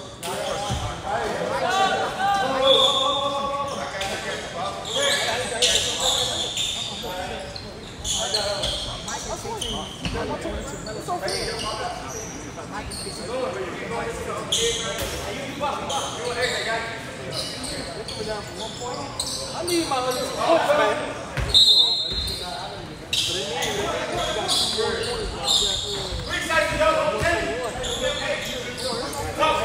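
Players and spectators shout and call out in an echoing hall.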